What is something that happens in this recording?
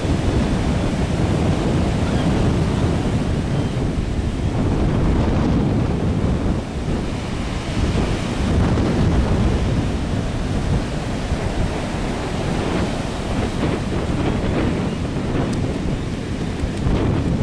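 Heavy ocean surf breaks and rumbles, washing up a sandy beach.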